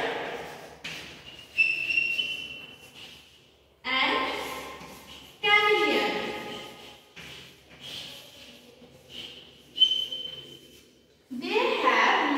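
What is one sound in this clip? Chalk taps and squeaks on a board.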